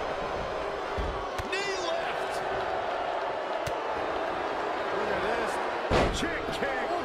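Bodies slam heavily onto a wrestling ring mat.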